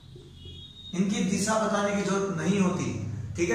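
A young man speaks clearly and steadily, close by.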